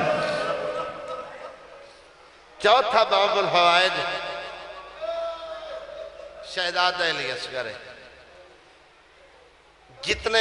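A man recites with passion through a microphone, in a reverberant space.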